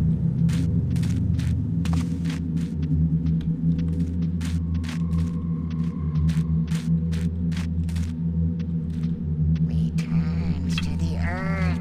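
Footsteps thud steadily on a stone floor.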